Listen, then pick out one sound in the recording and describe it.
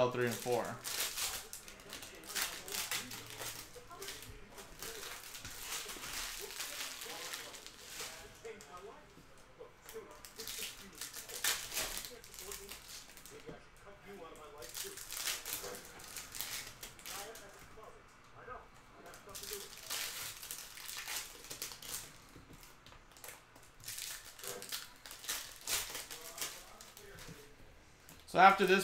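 Foil card wrappers crinkle and tear as they are ripped open.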